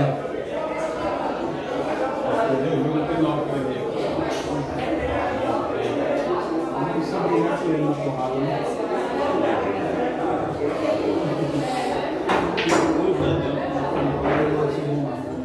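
Men talk and chat nearby throughout.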